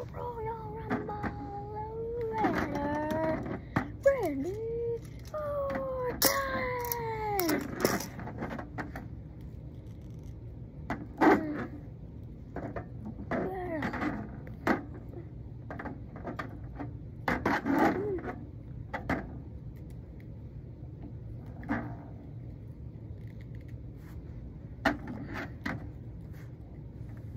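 Plastic toy figures clack and thump against each other.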